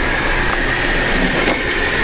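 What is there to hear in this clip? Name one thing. Water pours and splashes onto a hard floor.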